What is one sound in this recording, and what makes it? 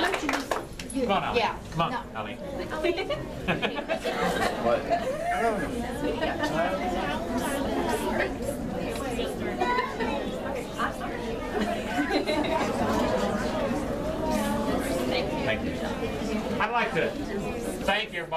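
An older man speaks calmly to a gathering.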